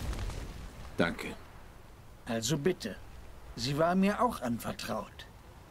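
A man speaks calmly in a low voice.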